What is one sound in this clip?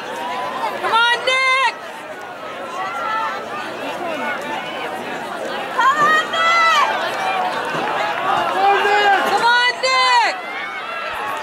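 Spectators shout and cheer loudly for runners.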